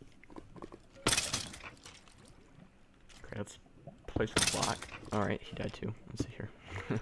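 Stone blocks crack and crumble as a pickaxe breaks them.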